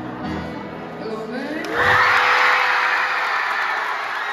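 A guitar and keyboard play live in a large echoing hall.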